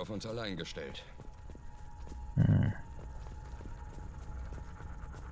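Heavy footsteps crunch on dry grass.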